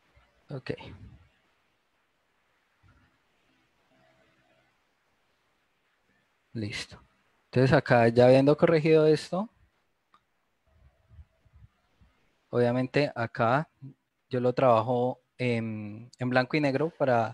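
A man speaks calmly through an online call, in short bursts with pauses.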